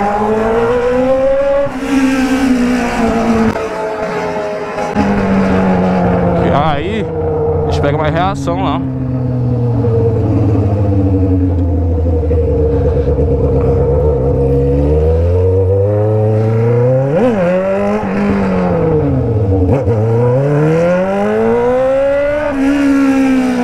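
An inline-four Honda Hornet with a straight-pipe exhaust roars, revving up and shifting through gears.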